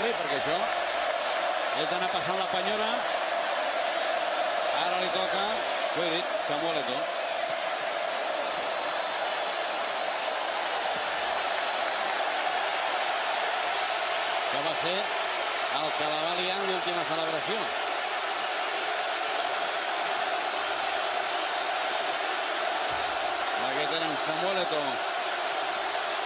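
A stadium crowd sings together.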